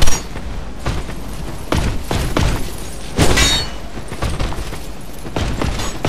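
Sword blows strike a creature with heavy thuds.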